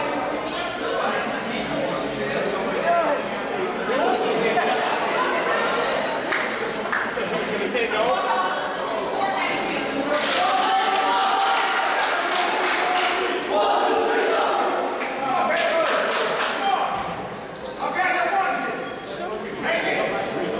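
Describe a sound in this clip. A crowd of young people chatters and shouts in a large echoing gym.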